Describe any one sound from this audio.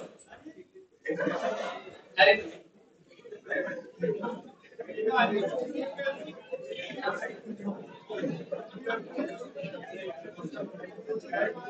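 A seated crowd murmurs and chatters softly.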